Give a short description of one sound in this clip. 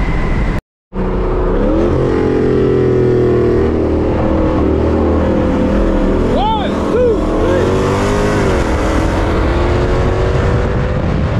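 Another car's engine roars close alongside.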